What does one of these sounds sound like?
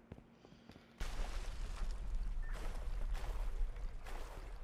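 Water splashes and sloshes loudly nearby.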